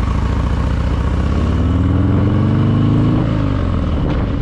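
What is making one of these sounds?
A motorcycle engine revs up as the bike speeds away, then eases off.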